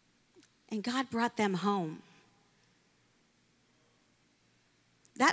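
A young woman speaks with emphasis into a microphone, heard through loudspeakers.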